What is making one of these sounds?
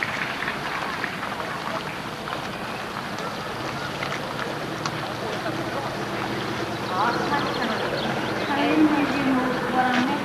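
A shallow river ripples and gurgles over stones.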